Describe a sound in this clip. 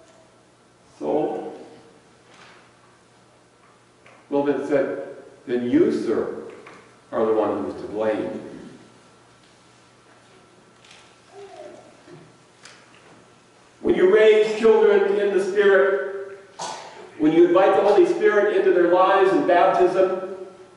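A middle-aged man speaks calmly into a microphone in a large echoing room.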